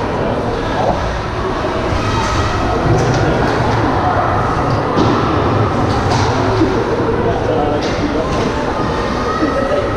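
Hockey sticks clack against the ice and puck.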